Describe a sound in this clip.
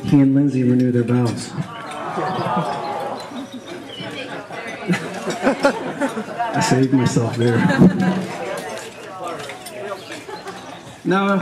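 A young man speaks through a microphone and loudspeaker, outdoors.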